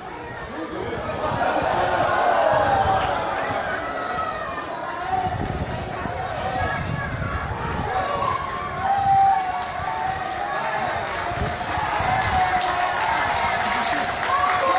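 A crowd cheers and shouts as horses race past.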